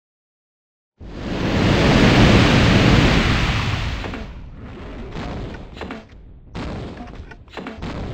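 A large creature roars loudly and rumbles.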